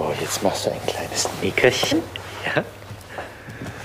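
Fabric rustles and crumples close by.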